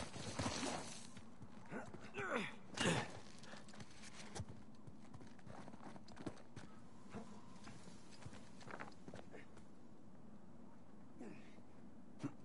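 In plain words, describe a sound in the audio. Footsteps crunch on loose gravel and rock.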